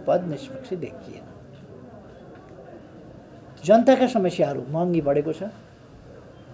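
An elderly man speaks calmly and haltingly, close to a microphone.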